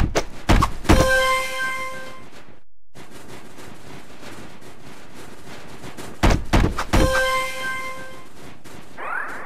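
A bright chime rings out with a short ringing tail.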